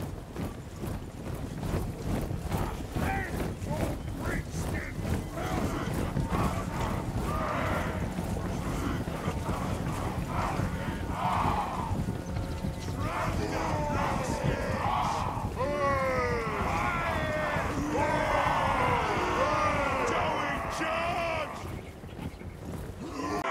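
A large army marches with heavy, rumbling footsteps.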